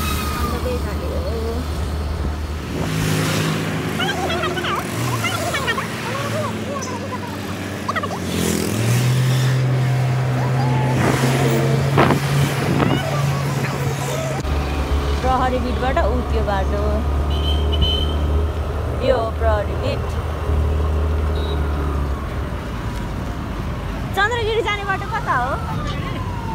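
Other motorcycles and cars pass by on the road.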